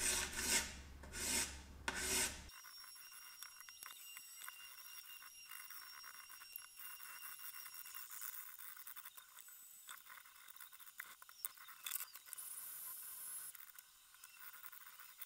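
Small metal tools tick and scrape softly.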